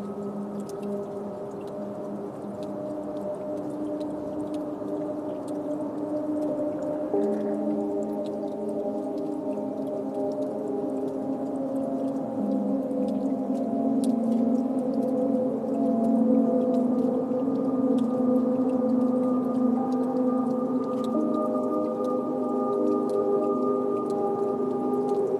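Synthesizer drones with layered sustained notes that slowly shift and grow louder.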